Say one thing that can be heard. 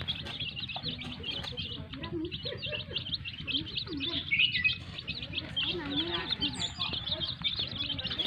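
Many chicks peep constantly in shrill, rapid chirps.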